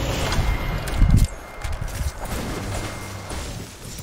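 A game reward chime rings out.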